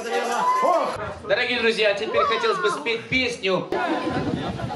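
A young man talks excitedly close by.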